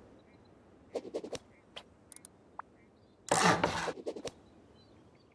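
A hammer knocks on wood and stone in quick blows.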